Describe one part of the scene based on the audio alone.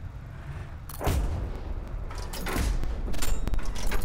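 A tank cannon fires in sharp bangs.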